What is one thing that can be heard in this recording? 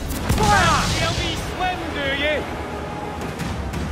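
Cannon fire booms and a ship splinters.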